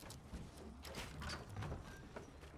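A pickaxe strikes a wooden wall with sharp knocks.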